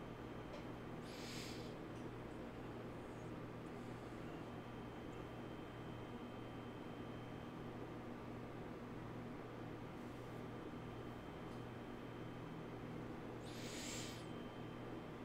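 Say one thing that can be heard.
A man breathes in slowly near a microphone.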